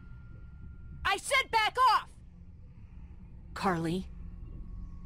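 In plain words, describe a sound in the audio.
A young woman speaks firmly and tensely.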